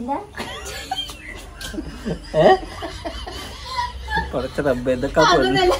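Women laugh nearby.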